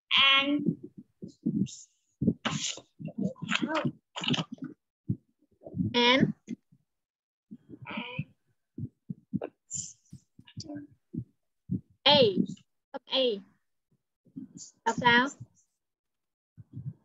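A child speaks over an online call.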